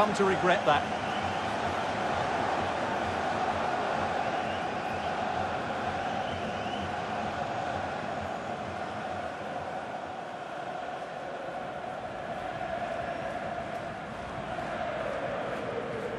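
A large crowd roars and cheers in a big stadium.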